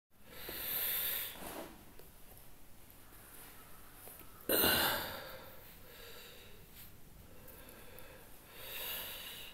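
An elderly man chants loudly in long, drawn-out phrases close by.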